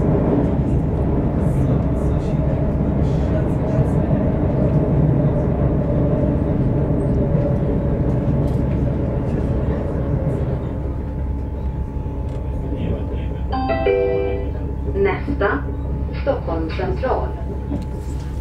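A vehicle rumbles steadily as it rolls along.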